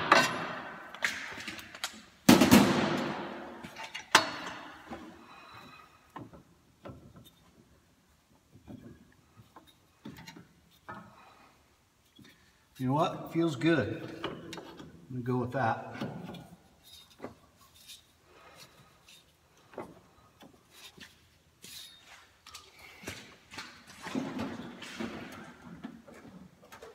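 Metal parts clank and knock under a vehicle.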